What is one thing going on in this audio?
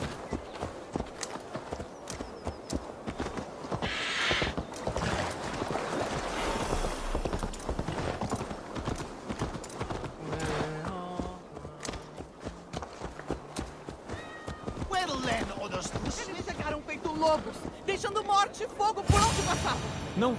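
Horse hooves clop steadily on dirt and stone.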